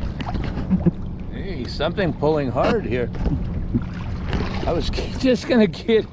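A fishing reel whirs and clicks as line is wound in.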